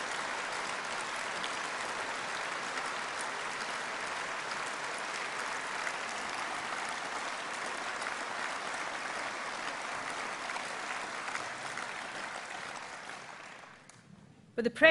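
A large crowd applauds in a big echoing hall, then the applause fades.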